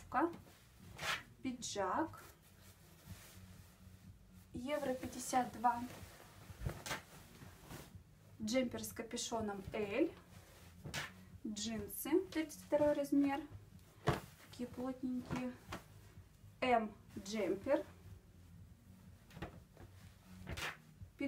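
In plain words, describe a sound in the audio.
Fabric rustles and swishes as clothes are handled and folded.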